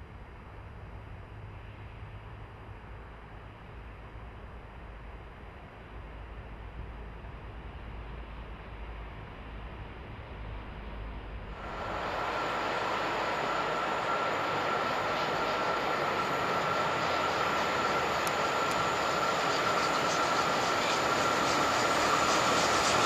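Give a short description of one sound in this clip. A steam locomotive chugs and puffs in the distance, growing louder as it approaches.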